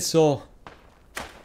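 A young man speaks briefly into a nearby microphone.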